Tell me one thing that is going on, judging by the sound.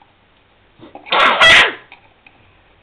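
A small child squeals loudly with laughter.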